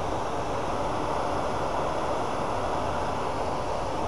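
Sandpaper rubs against a spinning workpiece.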